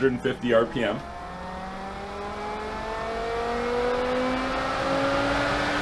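A pump motor starts and hums with a steadily rising whine.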